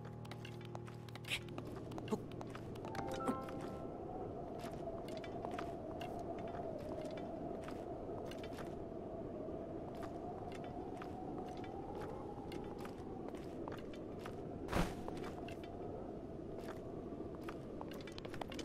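Hands scrape and tap on stone as a figure climbs.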